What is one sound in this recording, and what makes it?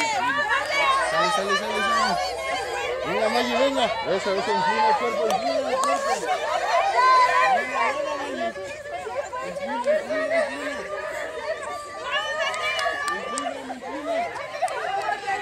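Women chant encouragement in a steady rhythm.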